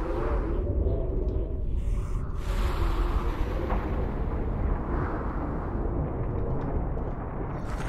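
Energy beams hum and crackle.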